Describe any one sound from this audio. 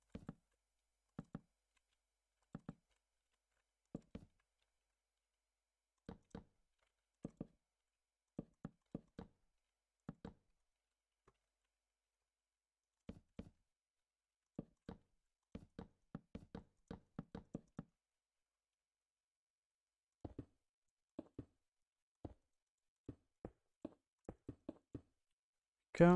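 Blocks are placed and broken with short, soft knocks, again and again.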